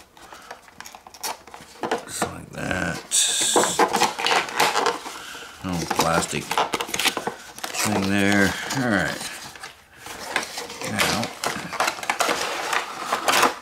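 A cardboard box scrapes and rustles as it is opened.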